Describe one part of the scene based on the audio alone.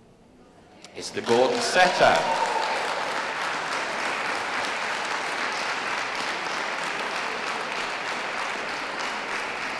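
A crowd of spectators applauds in a large hall.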